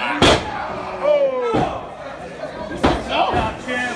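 Bodies thump on a wrestling ring mat.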